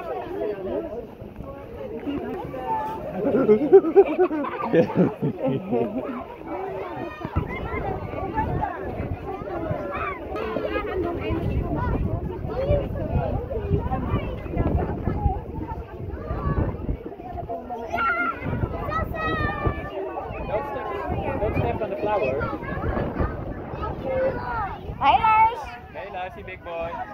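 Children chatter and call out nearby outdoors.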